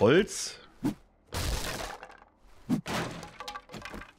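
An axe chops through a wooden board, splintering it.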